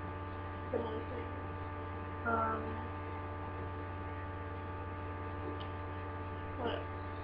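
A young woman speaks softly in short bursts, close to a microphone.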